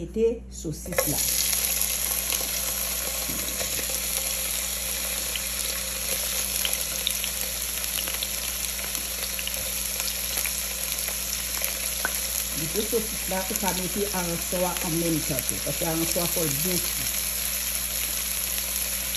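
Sausage slices sizzle steadily in hot oil in a frying pan.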